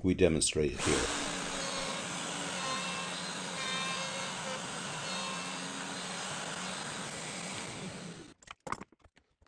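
A router motor whirs steadily as it cuts into wood.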